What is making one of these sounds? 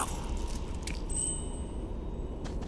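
A soft chime rings.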